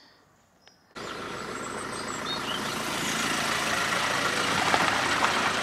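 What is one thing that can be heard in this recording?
A van drives past close by on gravel, its engine and tyres growing louder.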